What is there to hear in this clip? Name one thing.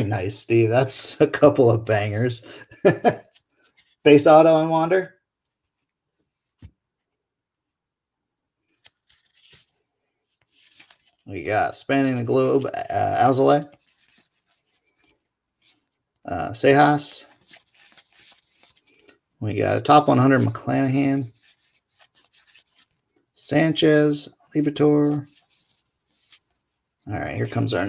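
Cards rustle and flick softly as a hand sorts through them.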